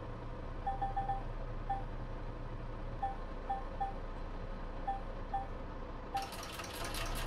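A touchscreen beeps with short high tones as keys are pressed.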